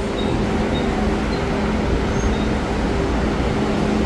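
Bus doors slide shut.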